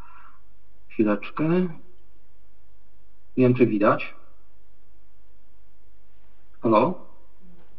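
A man speaks briefly into a microphone, in short bursts with pauses.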